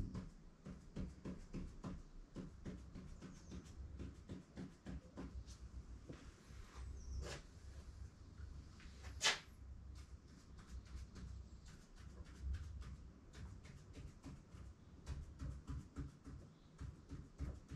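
A pen scratches quickly across a hard surface in short strokes.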